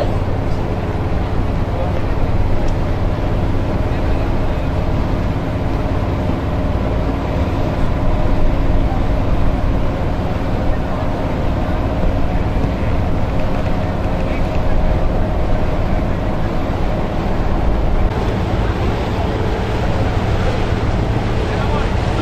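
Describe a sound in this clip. Strong wind roars and buffets the microphone outdoors.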